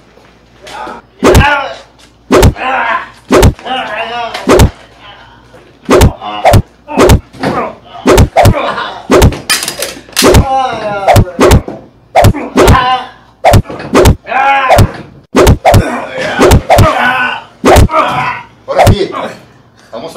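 Men shout loudly and urgently at close range.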